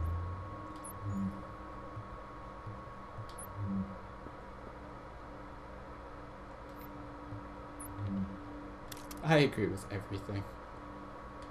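Soft interface blips sound every few seconds.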